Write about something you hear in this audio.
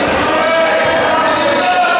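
A basketball is dribbled on a hardwood court in an echoing gym.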